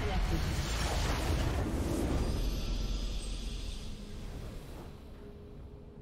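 A loud victory fanfare bursts out with a booming blast and fades away.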